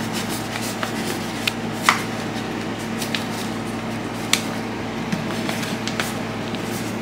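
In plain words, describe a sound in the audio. A paper cone crinkles and rustles as it is handled.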